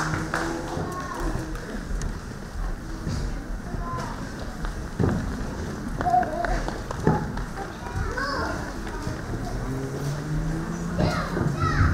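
Footsteps shuffle across a stage.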